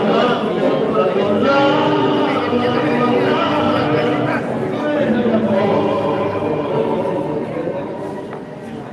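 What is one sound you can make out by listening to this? Music plays through loudspeakers in a large room.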